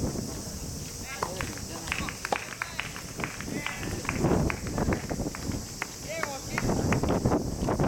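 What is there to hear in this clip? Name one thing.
Tennis balls are hit with rackets in the distance.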